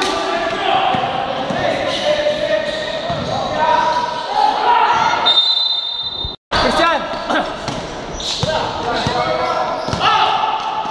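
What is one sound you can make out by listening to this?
A basketball bounces on a hard court in an echoing hall.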